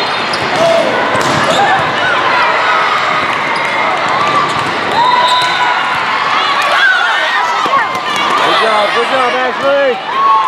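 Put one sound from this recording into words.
Young women shout and call out excitedly in a large echoing hall.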